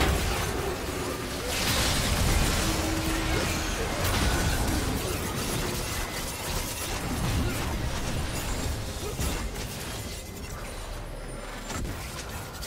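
Magic spells whoosh and crackle in a busy fantasy battle.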